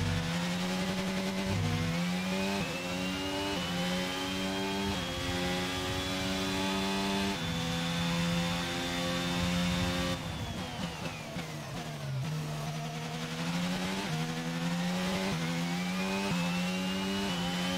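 A racing car engine screams, rising in pitch through the gears with sudden drops at each shift.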